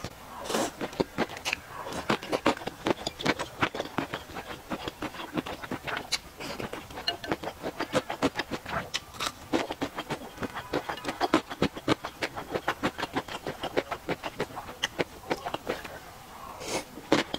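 A young woman slurps noodles loudly, close to a microphone.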